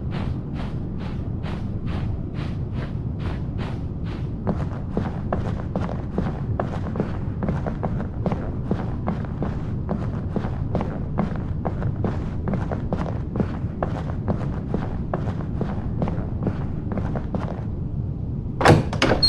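Footsteps tap steadily on a hard floor in a quiet room.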